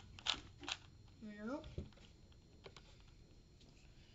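A cube puzzle clicks as it is twisted quickly.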